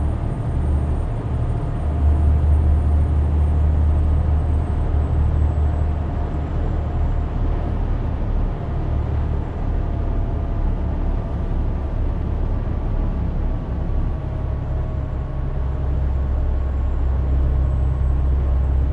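A truck engine hums with a deep, steady drone while driving.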